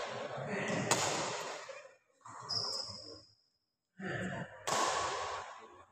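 A badminton racket strikes a shuttlecock.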